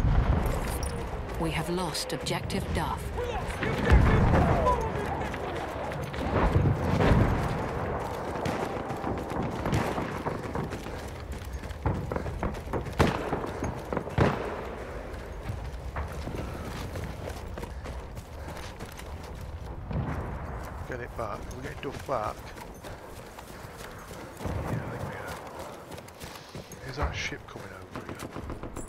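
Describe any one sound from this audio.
Footsteps crunch over rubble and gravel.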